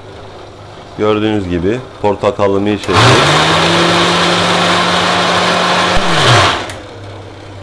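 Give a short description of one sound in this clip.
A blender motor whirs in short bursts, then runs steadily and loudly before winding down.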